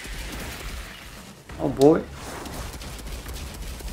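A creature screeches in a video game.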